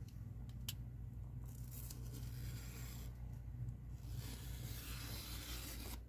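A knife blade scrapes along a ruler, cutting paper.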